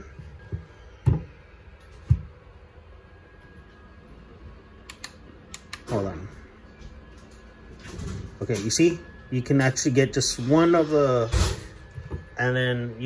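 A plastic switch clicks several times.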